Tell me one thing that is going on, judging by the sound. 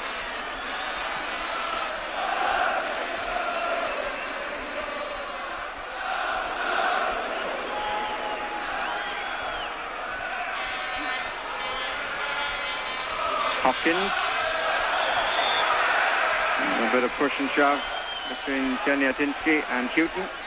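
A large stadium crowd chants and cheers loudly.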